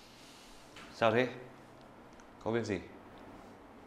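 A young man speaks close by in short, questioning bursts.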